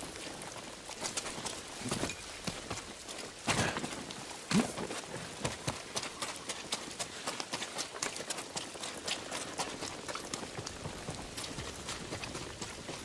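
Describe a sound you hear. Quick footsteps patter on wet ground.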